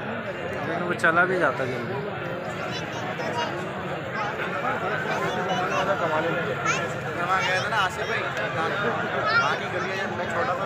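Men shout out above the crowd.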